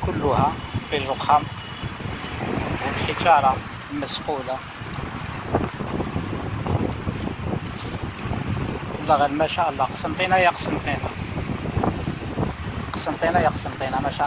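Footsteps tap on stone paving outdoors.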